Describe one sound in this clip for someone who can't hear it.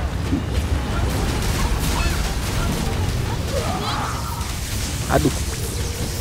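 Magic spells and weapon blows crackle and whoosh in a game battle.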